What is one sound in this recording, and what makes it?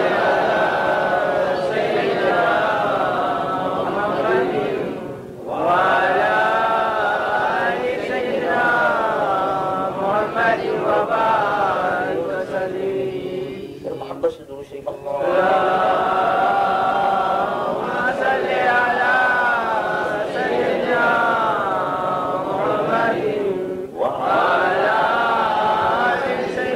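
A man recites in a slow, melodic, sung voice close to a microphone.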